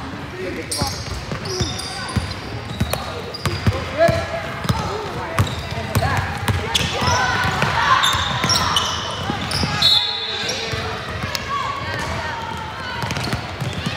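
Girls shout and call out across the gym.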